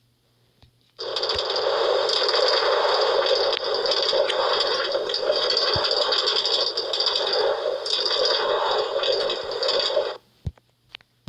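A minecart rattles steadily along rails, then stops.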